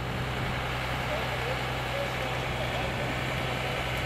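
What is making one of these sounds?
A man talks at a distance outdoors.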